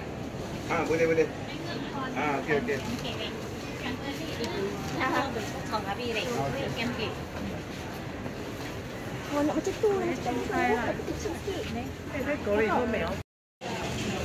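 Women talk close by among shoppers.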